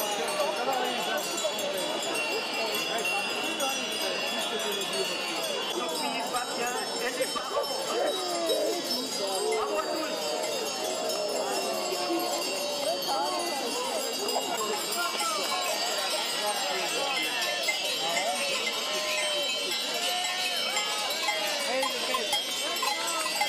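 Goats bleat as a herd passes.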